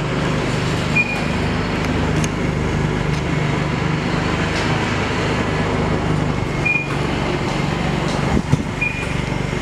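A change machine beeps in short, high tones as its buttons are pressed.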